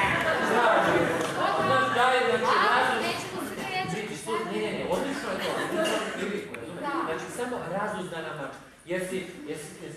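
A man speaks with animation in a hall.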